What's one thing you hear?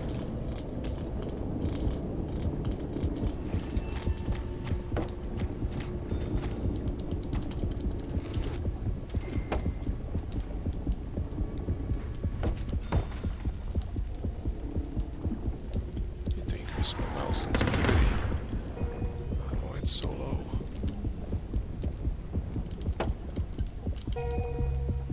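Water rumbles and gurgles steadily all around underwater.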